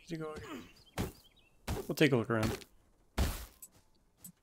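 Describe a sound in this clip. A weapon strikes with heavy thuds.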